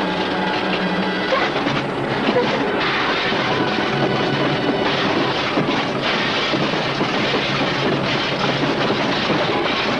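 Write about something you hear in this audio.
A car crashes and tumbles down a slope.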